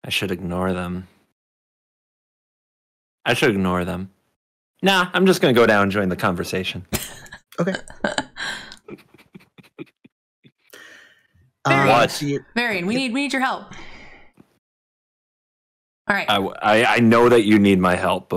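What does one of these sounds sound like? A man talks with animation over an online call.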